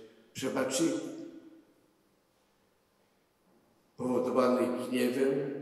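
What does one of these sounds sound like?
An elderly man speaks slowly and solemnly into a microphone, echoing in a large hall.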